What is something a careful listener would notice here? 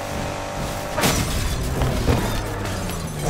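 A car crashes with a loud crunch of metal.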